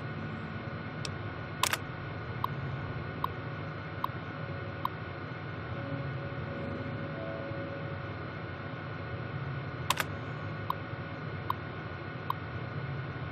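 Faint short ticks come in quick runs from an old computer terminal.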